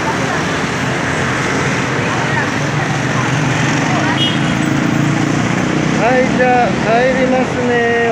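Traffic roars steadily along a busy street outdoors.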